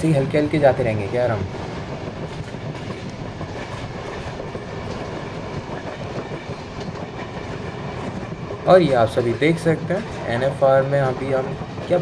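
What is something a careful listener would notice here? A train rolls steadily along the tracks.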